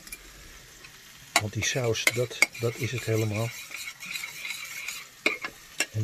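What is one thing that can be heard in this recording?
A metal spoon scrapes and clinks against a plate.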